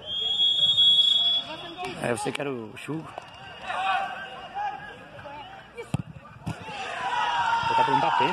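Spectators shout and cheer at a distance.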